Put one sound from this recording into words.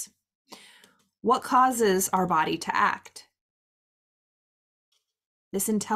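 A woman speaks to the listener with animation, close to a microphone.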